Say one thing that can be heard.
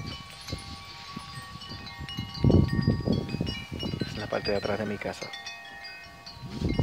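Metal wind chimes ring softly with long, overlapping tones.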